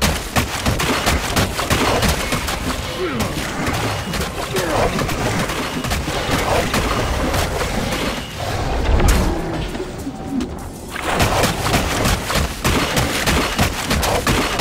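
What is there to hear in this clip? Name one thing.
Water splashes as crocodiles thrash.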